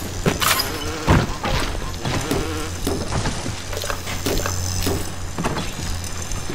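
Short clicks sound as items are picked up.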